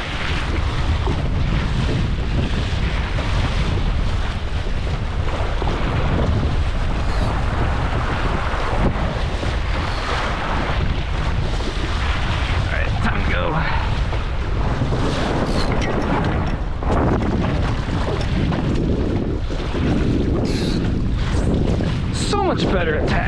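Water splashes and rushes against a moving boat's hull.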